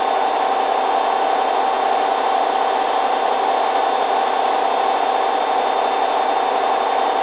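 A washing machine hums steadily as its drum spins.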